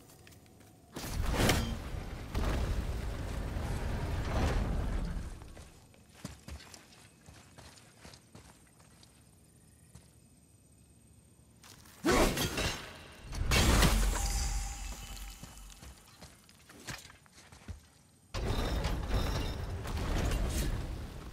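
A heavy stone mechanism grinds and rumbles as a crank turns.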